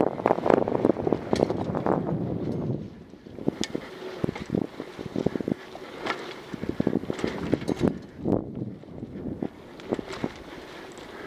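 Bike tyres roll and rattle over a bumpy dirt trail.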